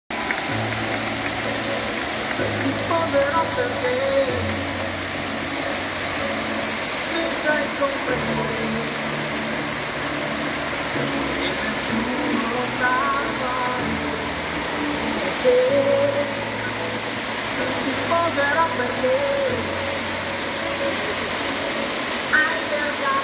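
Sparkler fountains hiss and crackle steadily outdoors.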